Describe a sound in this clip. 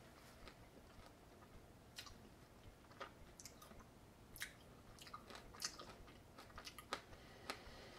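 A man crunches a crisp snack while chewing.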